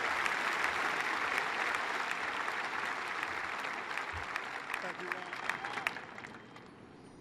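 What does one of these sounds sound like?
A stadium crowd murmurs and cheers in a large open space.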